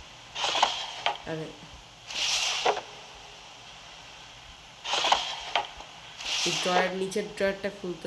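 A wooden drawer slides open and shut with a scraping rush.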